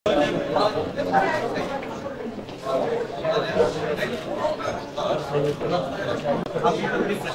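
Several men and women chatter in a crowded room.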